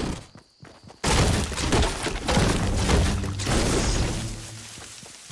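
A pickaxe chops repeatedly into wood.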